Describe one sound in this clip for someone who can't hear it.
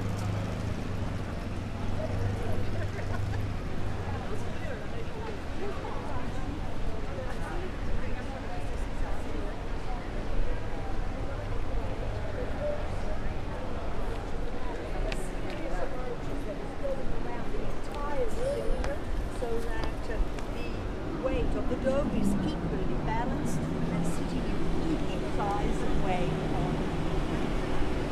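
A crowd of people chatters in an open square outdoors.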